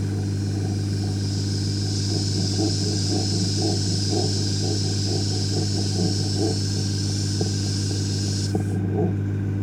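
An airbrush hisses steadily as it sprays.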